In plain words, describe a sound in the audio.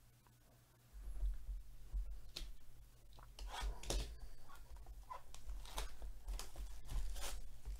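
Plastic wrap crinkles as a wrapped box is handled.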